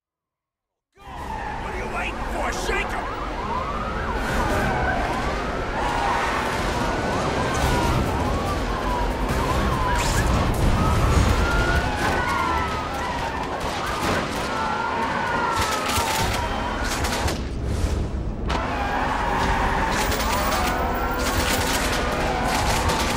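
Car engines roar at high speed.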